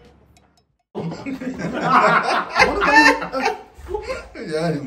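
Young men laugh loudly.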